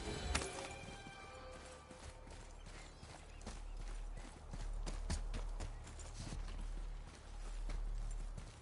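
Heavy footsteps climb stone steps.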